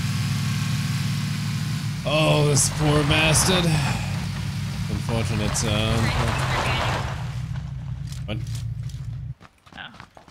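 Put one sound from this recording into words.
A video game off-road jeep engine drones as it drives over rough ground.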